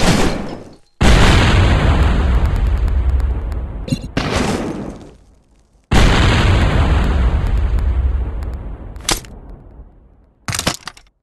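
Explosions boom and rumble away.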